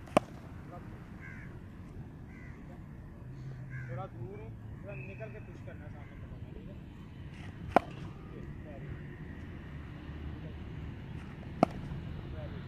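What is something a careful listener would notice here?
A cricket bat sharply strikes a ball several times.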